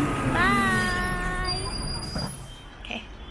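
A young woman speaks with animation close to the microphone.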